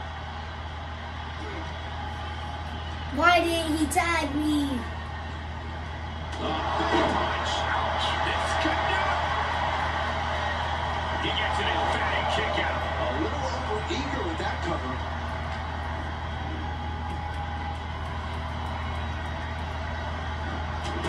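A crowd cheers through a television speaker.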